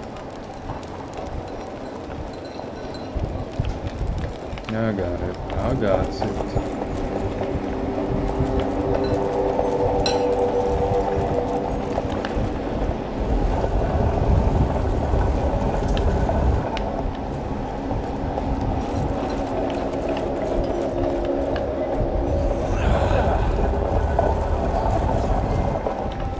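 A young man talks into a microphone, close up.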